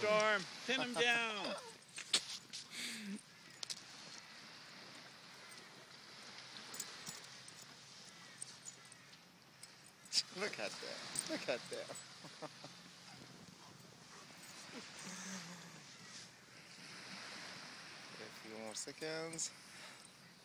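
Two dogs growl and yip as they wrestle playfully.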